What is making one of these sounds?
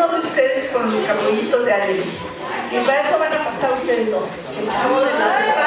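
A middle-aged woman speaks calmly through a microphone in a large hall.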